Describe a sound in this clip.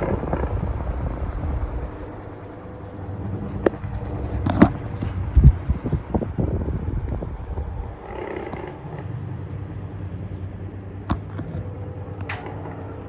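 Electric fans whir and hum steadily close by.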